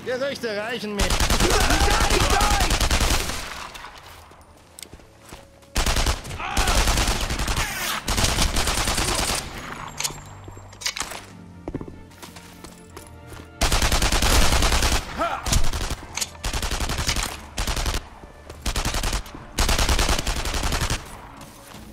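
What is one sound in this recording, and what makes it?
Automatic rifle fire rattles in loud, rapid bursts.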